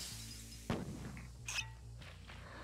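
A glass bottle shatters.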